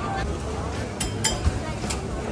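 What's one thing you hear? A vendor chops food with a knife.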